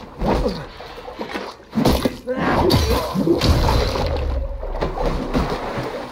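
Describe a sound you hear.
Blows and weapons clash in a brief fight.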